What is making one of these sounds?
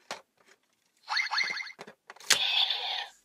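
A toy plays electronic sound effects and music through a small speaker.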